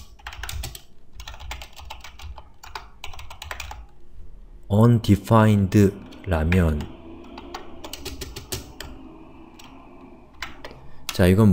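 Keys clatter as someone types quickly on a keyboard.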